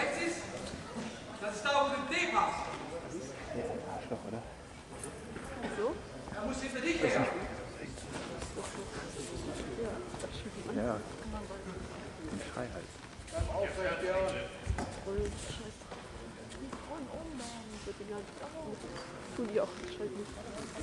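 Spectators talk and call out in a large echoing hall.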